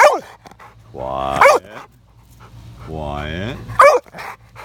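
A dog howls with a rising, wavering whine.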